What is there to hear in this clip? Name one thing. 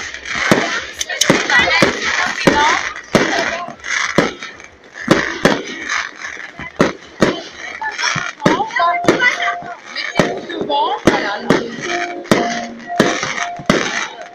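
Fireworks crackle and fizz as they burst.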